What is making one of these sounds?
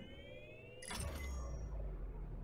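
A soft electronic whoosh sweeps as a hologram shifts.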